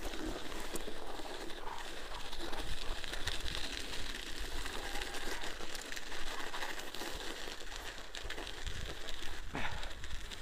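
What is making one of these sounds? Wind rushes and buffets outdoors.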